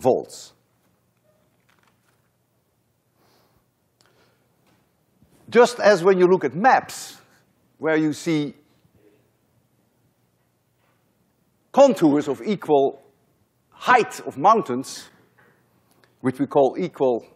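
An elderly man lectures with animation through a microphone in a large hall.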